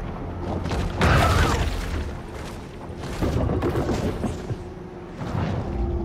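Water splashes as something breaks the surface.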